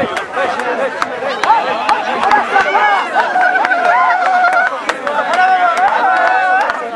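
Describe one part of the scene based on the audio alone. A large crowd of men shouts and sings loudly outdoors.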